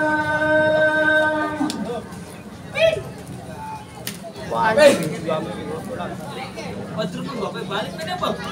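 A crowd of young women chatters and calls out outdoors.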